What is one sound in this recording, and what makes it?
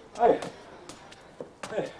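Footsteps scuff on hard ground.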